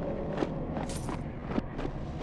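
A fiery explosion bursts and crackles.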